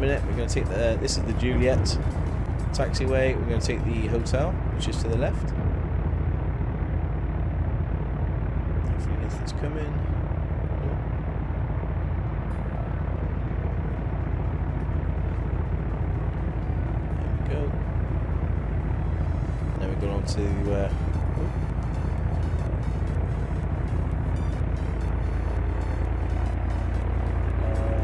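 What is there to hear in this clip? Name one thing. A light aircraft engine hums steadily.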